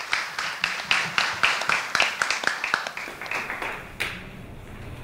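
A small audience claps in a room.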